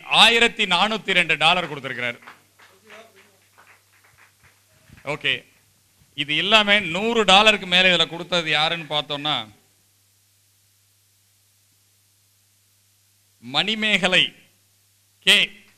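An older man speaks loudly and with animation.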